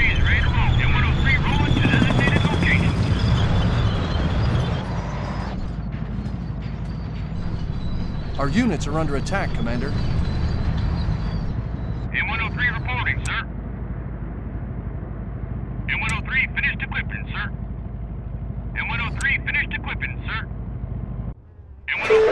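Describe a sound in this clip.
Tank engines rumble low.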